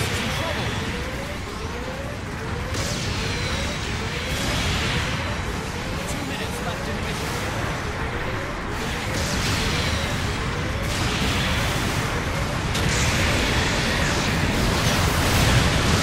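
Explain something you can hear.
Explosions boom and rumble in a video game.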